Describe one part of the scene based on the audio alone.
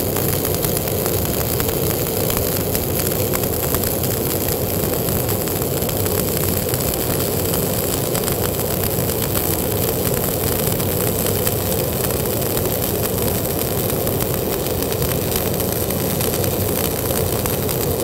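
A welding arc crackles and sizzles steadily close by.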